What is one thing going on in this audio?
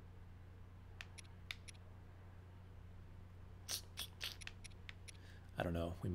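A game menu blips softly as the selection moves.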